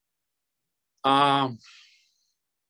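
A man shouts loudly once.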